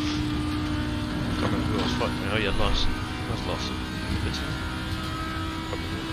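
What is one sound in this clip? A racing car engine roars steadily at high revs.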